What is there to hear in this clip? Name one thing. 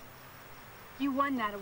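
A young woman speaks up nearby in a clear voice.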